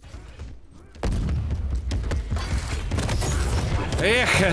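Gunfire blasts in a video game.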